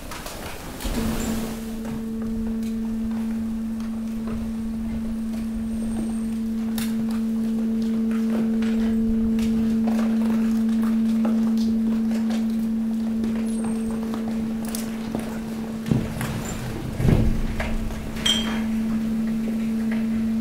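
A machine motor hums steadily as a moving floor drags a load.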